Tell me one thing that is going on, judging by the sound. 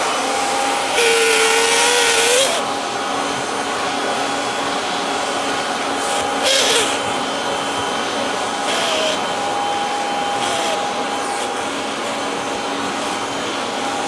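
A vacuum cleaner nozzle sucks and rustles against fabric, with changing pitch.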